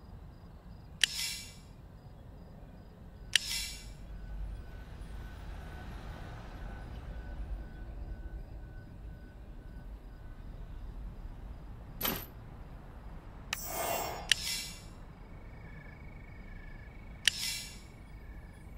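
Short sparkling game chimes ring out now and then.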